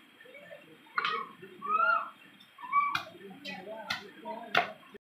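A knife scrapes and chops on fish.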